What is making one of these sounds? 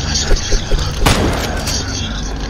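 A shotgun fires once with a loud blast.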